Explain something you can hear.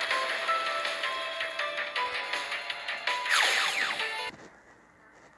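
Bright video game music plays with chiming notes, then stops.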